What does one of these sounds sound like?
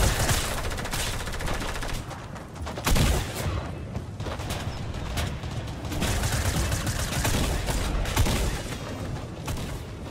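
A pickaxe whooshes through the air in quick swings.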